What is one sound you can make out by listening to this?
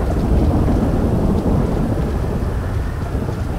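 Thunder rumbles loudly and rolls away.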